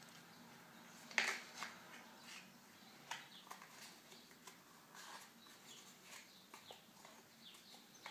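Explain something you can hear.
Fingers handle a small cardboard box with soft rustles and light taps.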